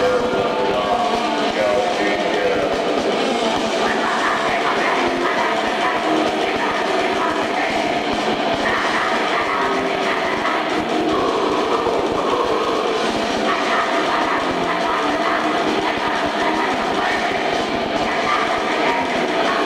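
Electric guitars play heavily distorted.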